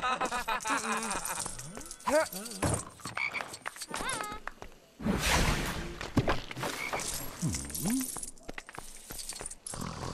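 Small coins tinkle and chime as they are collected.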